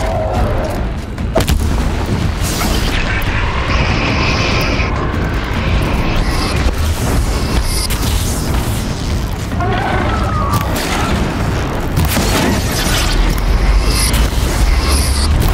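A huge mechanical bird screeches and beats its metal wings.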